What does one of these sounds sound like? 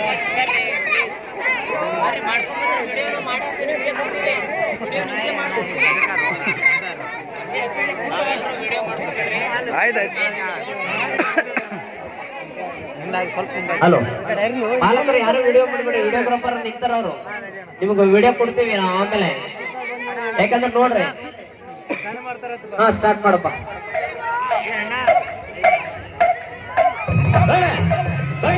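A group of young children sing together.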